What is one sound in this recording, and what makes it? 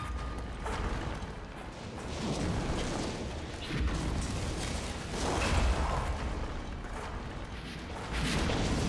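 Creatures snarl and screech close by.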